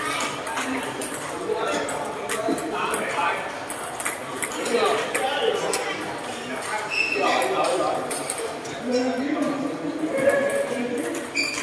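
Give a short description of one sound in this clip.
Table tennis balls click sharply against paddles and tables in a large echoing hall.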